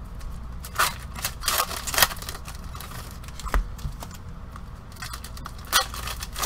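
Card packs rustle and crinkle as hands handle them.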